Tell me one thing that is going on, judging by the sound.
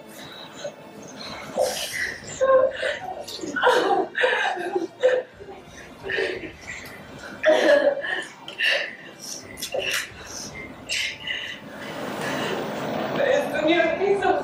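A woman speaks emotionally, close by.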